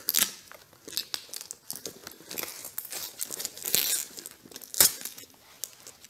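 Fingers scratch and rustle against cardboard and paper.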